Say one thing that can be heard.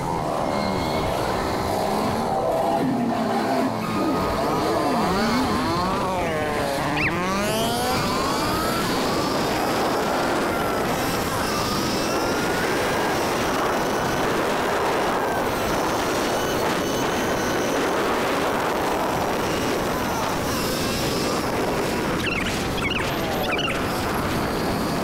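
A motorcycle engine revs up and down, rising and falling in pitch.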